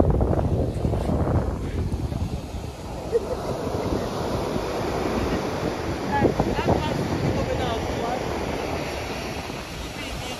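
Waves break and wash up onto the shore.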